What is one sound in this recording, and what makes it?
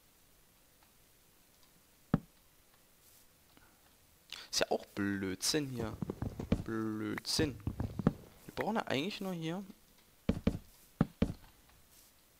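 Wooden blocks knock softly as they are broken and placed.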